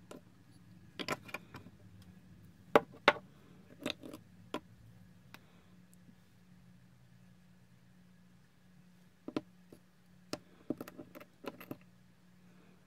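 Small glass jars clink and tap on a hard surface.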